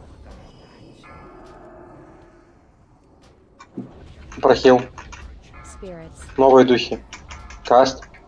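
Magic spells chime and whoosh in a game.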